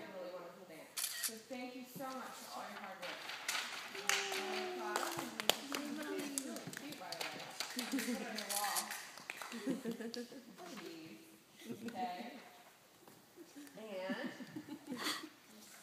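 Young girls speak and giggle.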